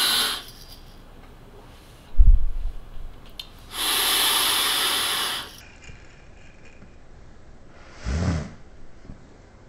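A man exhales a long, loud breath of vapour close by.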